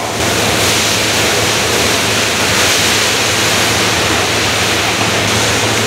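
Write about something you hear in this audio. Sauce pours into a large kettle of minced meat.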